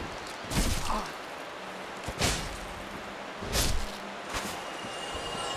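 Swords clash and slash in heavy blows.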